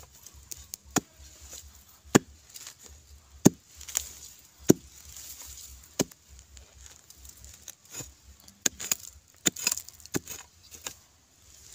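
A metal blade digs and scrapes into dry, crumbly soil with sharp knocks.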